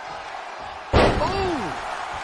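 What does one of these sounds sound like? A body slams heavily onto a wrestling mat.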